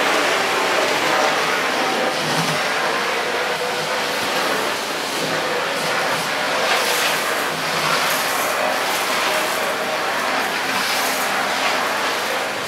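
A vacuum cleaner head scrapes and rattles across a hard floor.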